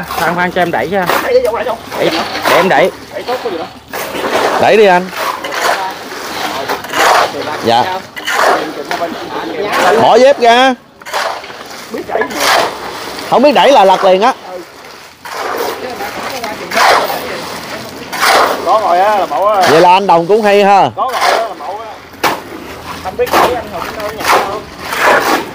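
Shovels scrape and mix wet concrete.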